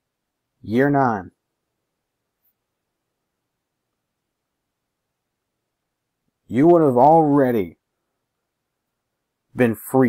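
A young man talks to the microphone close by, with animation.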